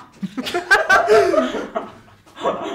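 A young man laughs close by.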